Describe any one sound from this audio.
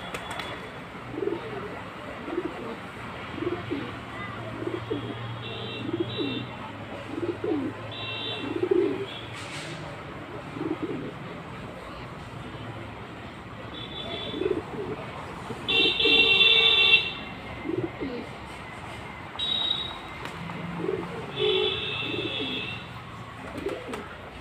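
Pigeons coo softly and repeatedly close by.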